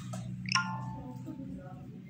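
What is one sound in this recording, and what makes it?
Metal jewellery jingles softly as it is handled.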